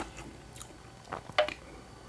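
A man gulps a drink from a can.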